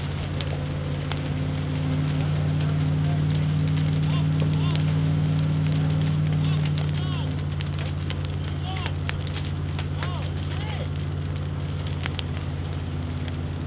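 A fire crackles and pops.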